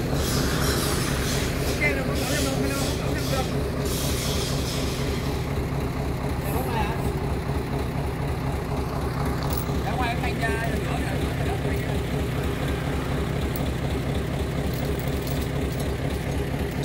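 A heavy truck engine rumbles steadily close by.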